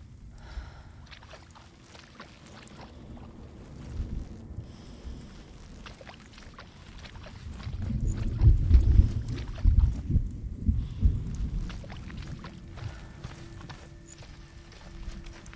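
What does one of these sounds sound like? Footsteps tread softly on grass and wooden boards.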